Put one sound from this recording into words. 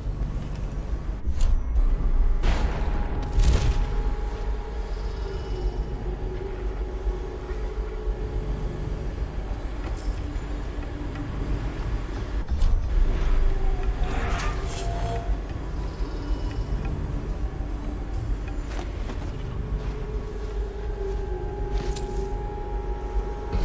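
Heavy machinery hums with a low, steady drone.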